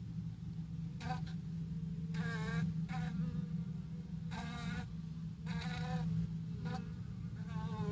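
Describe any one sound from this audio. A wasp buzzes loudly close by in short bursts.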